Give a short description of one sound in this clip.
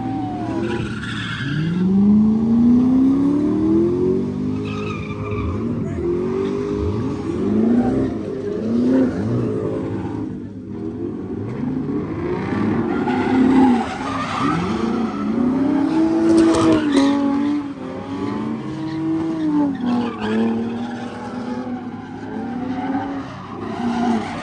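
Tyres screech on the road as cars spin.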